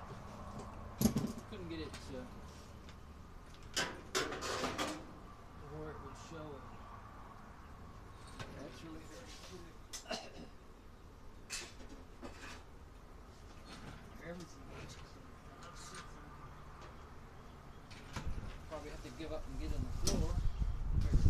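Tools clank against a clothes dryer's sheet-metal cabinet.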